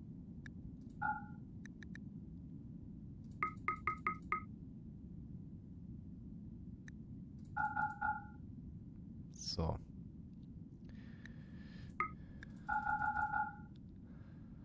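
Short electronic beeps chime as menu buttons are clicked.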